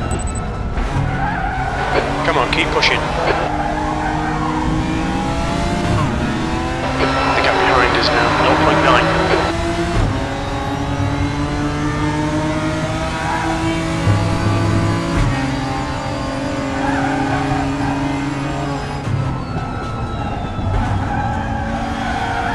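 A racing car engine roars and shifts through gears.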